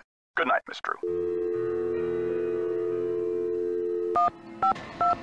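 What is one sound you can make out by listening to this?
A phone dial tone hums steadily, then stops.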